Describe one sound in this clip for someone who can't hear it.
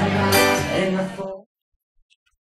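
A man sings with an acoustic guitar through loudspeakers.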